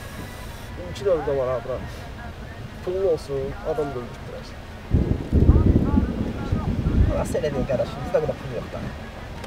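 A young man speaks casually up close.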